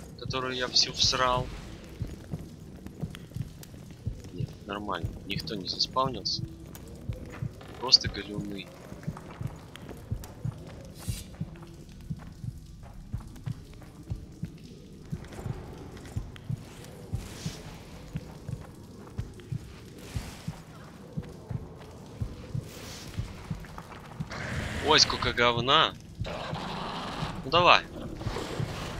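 Footsteps crunch over stony ground.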